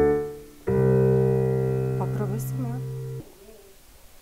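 Piano chords ring out and fade.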